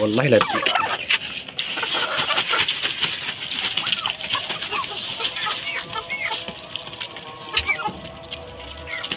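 Chickens cluck and chirp all around.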